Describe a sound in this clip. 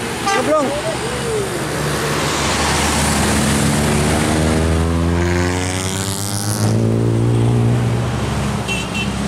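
A bus engine roars loudly close by as the bus pulls away.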